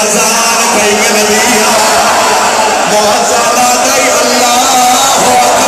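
A crowd of men chants along.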